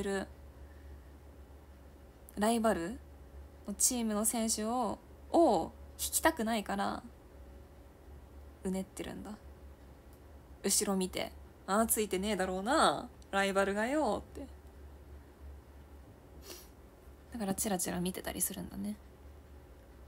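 A young woman talks close to a microphone in short bursts, calmly and cheerfully.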